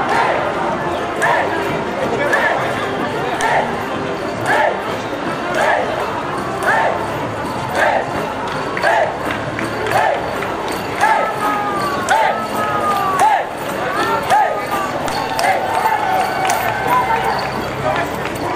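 A brass band plays a lively march outdoors.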